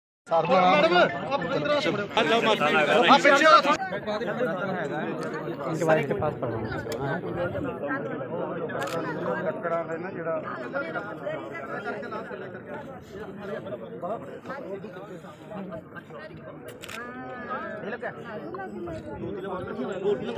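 A crowd of men and women murmurs and talks outdoors close by.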